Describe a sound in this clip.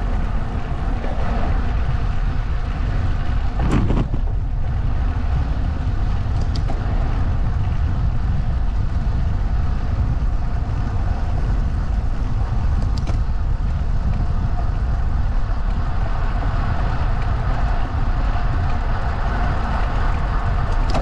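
Strong wind rushes and buffets loudly past while travelling along an open road outdoors.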